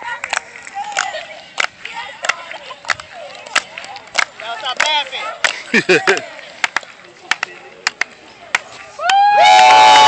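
Hands clap sharply in a quick rhythm.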